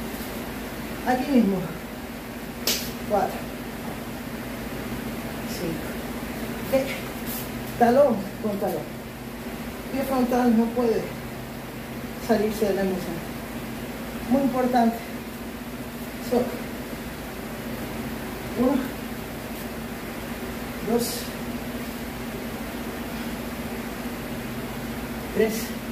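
A man calls out short words at intervals.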